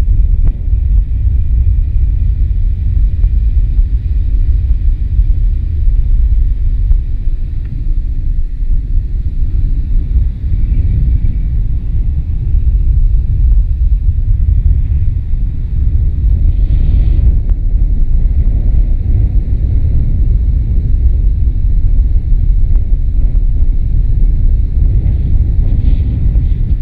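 Strong wind buffets the microphone with a steady low rumble.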